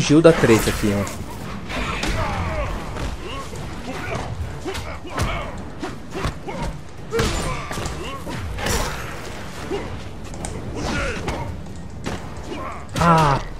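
Punches and kicks land with heavy, smacking thuds.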